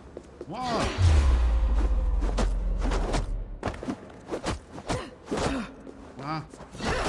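Fists land with sharp thuds in a brawl.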